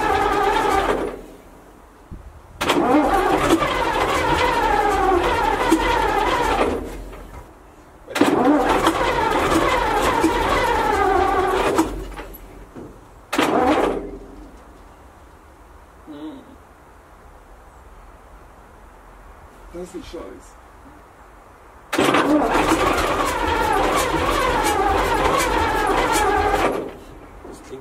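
A straight-eight diesel locomotive engine cranks on its starter in several bursts without catching.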